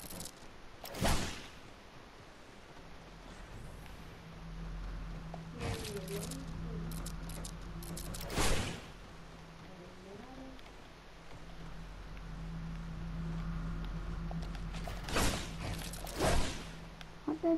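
Game building pieces snap into place with sharp clicks.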